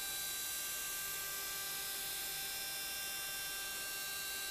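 A milling cutter whirs steadily as it carves metal.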